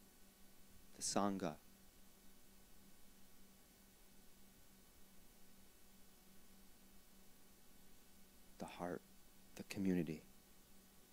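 A harmonica plays short bending notes close by.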